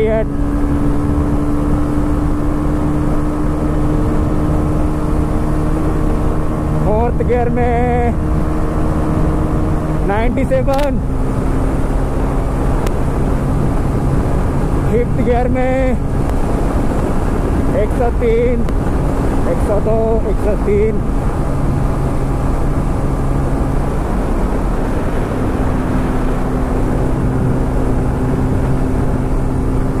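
A motorcycle engine hums steadily and revs up through the gears.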